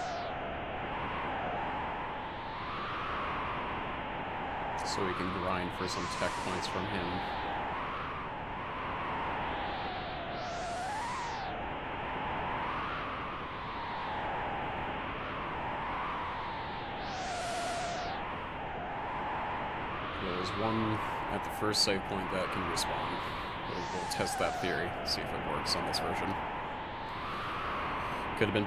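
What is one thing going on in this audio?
Calm looping game music with a wavering melody plays steadily.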